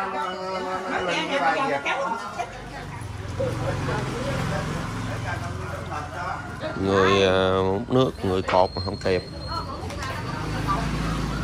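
Several women talk with animation nearby.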